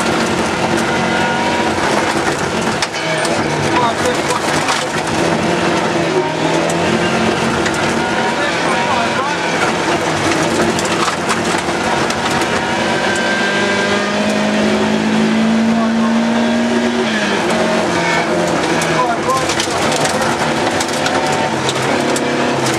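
A car engine roars loudly, revving up and down as the car speeds along.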